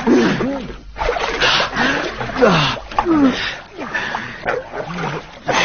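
A man wails loudly in grief.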